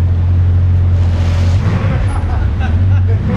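A sports car's engine revs briefly as the car pulls forward.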